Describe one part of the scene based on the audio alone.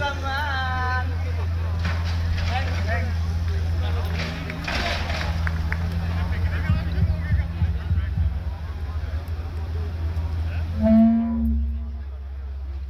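A crowd of men and women chants and shouts outdoors at a distance.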